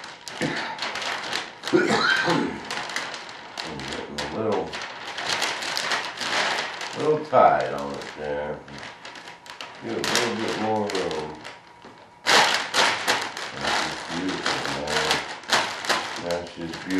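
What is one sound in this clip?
Plastic sheeting crinkles and rustles.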